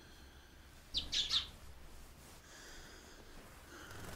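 A man speaks weakly and hoarsely nearby.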